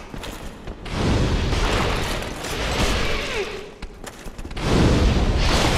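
Fire bursts with a loud roar.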